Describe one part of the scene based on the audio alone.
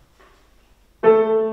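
A piano begins to play.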